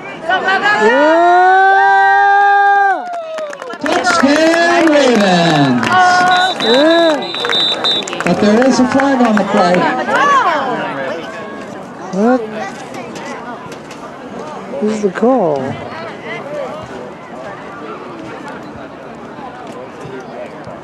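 A crowd of spectators cheers and shouts loudly nearby.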